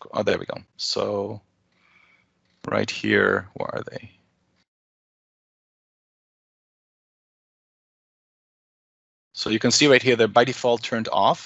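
A man speaks calmly over an online call, in bursts with pauses.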